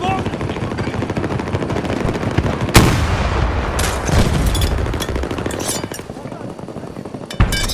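Gunfire crackles and rumbles throughout.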